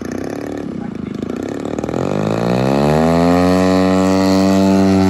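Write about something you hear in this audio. A model airplane engine revs up with a rising whine.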